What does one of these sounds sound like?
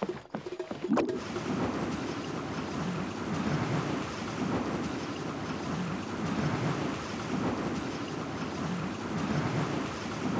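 A swirling gust of wind whooshes and roars steadily.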